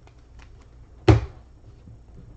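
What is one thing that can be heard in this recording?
A hard plastic card case knocks once against a surface.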